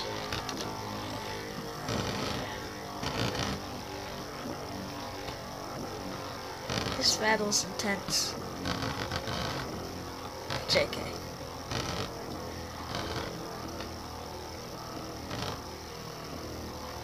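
Spinning tops whir steadily in a plastic dish.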